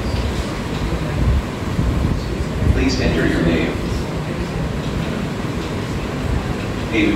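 A young girl speaks calmly, presenting to a small group.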